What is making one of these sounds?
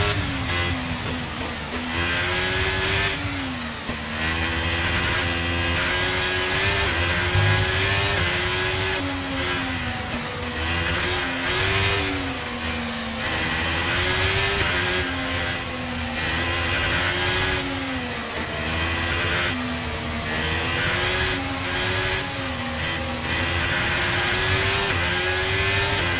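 A racing car engine screams at high revs, rising in pitch and dropping back with each gear change.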